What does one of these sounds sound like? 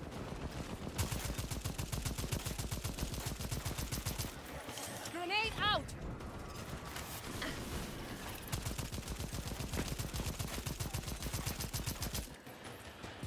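A rifle fires in rapid automatic bursts.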